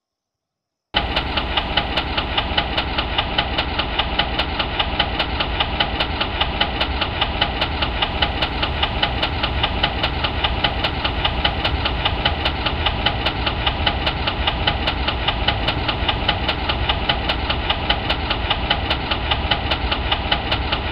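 A diesel train engine rumbles steadily.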